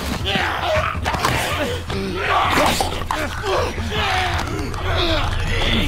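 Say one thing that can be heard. A man grunts and groans while struggling.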